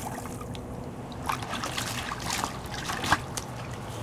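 A dog laps water.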